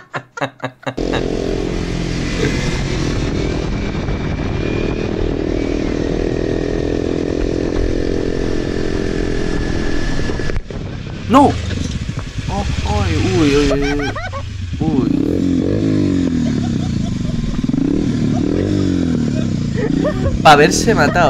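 A motorcycle engine roars and revs while riding fast.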